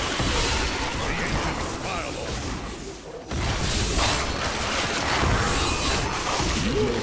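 Fiery magic blasts whoosh and burst in quick succession.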